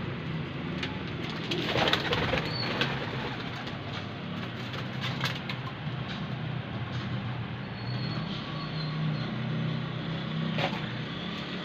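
Pigeons coo softly.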